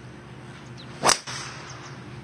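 A golf club strikes a ball with a sharp, crisp crack.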